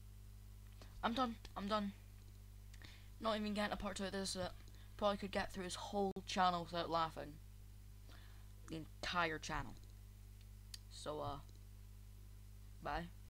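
A young girl talks close to a microphone.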